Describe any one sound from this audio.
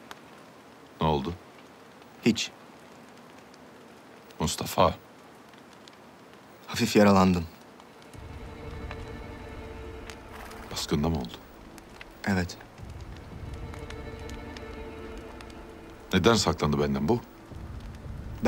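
A middle-aged man speaks in a low, slow voice, close by.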